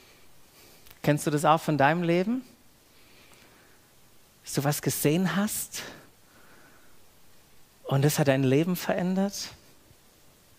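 A man speaks calmly through a headset microphone, in short phrases with pauses.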